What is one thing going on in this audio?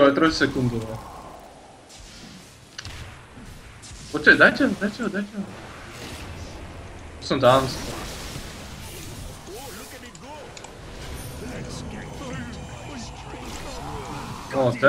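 Game spells crackle and clash in a fight.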